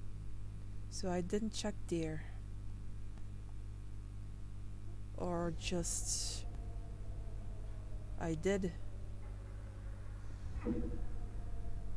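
A young woman speaks in short, calm bursts close to a microphone.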